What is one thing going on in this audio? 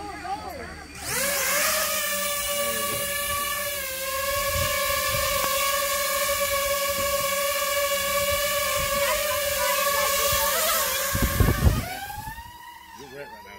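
A drone's propellers whine loudly as it lifts off and hovers close by.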